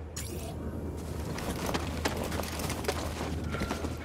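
Footsteps crunch on grass and dirt.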